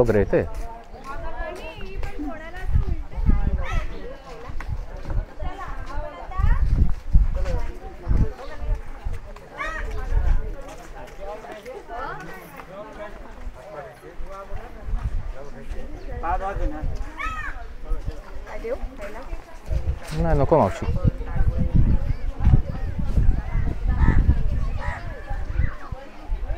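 Several men and women talk and chatter nearby.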